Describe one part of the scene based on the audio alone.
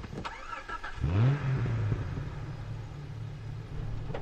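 A car engine starts up and runs.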